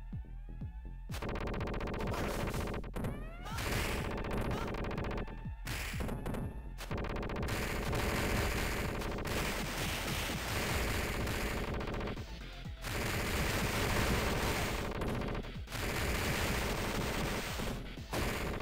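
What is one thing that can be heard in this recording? Punches and kicks land with sharp thuds in a fighting game.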